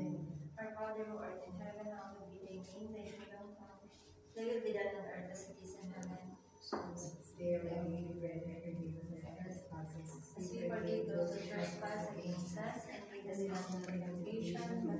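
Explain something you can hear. A woman sings steadily through a microphone and loudspeakers.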